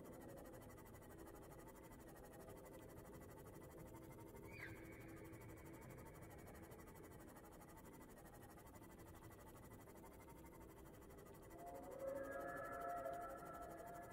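A vehicle's engine hums steadily underwater.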